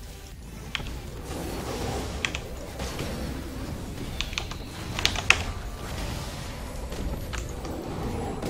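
Game spell effects crack and zap in short bursts.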